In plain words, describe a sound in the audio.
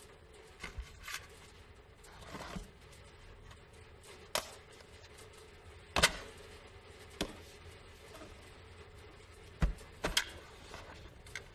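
Objects knock and rustle inside a cardboard box.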